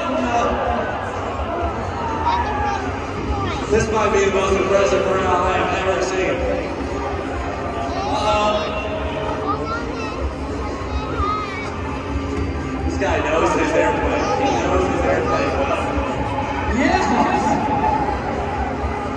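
A crowd chatters and cheers outdoors at a distance.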